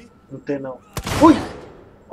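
A creature lets out a loud, sudden shriek.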